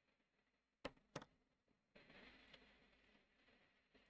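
A marker clicks down onto a hard table.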